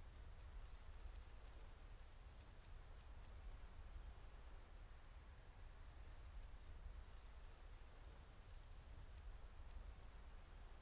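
Short, sharp menu clicks tick now and then.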